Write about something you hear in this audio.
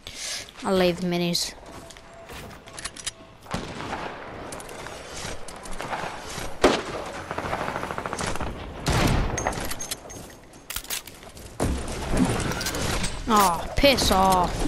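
Wooden building pieces clack into place in a video game.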